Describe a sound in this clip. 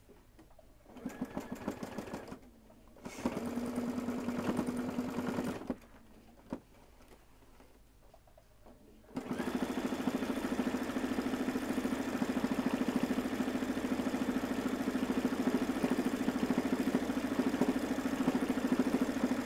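An embroidery machine whirs and taps rapidly as it stitches.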